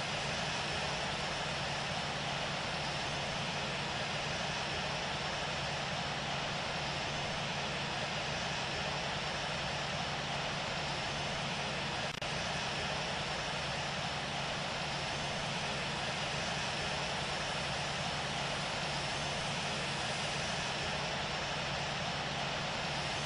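Jet engines roar steadily as an airliner taxis.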